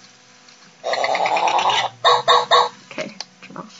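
A toy robot dog plays loud electronic beeps and chirps close by.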